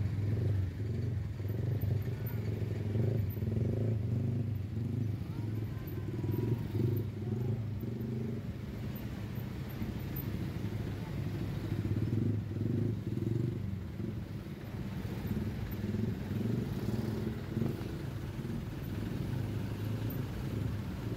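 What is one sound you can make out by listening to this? Motorcycle engines idle close by.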